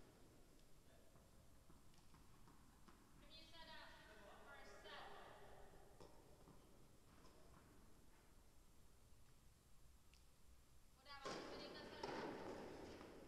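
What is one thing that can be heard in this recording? Footsteps shuffle on a hard court.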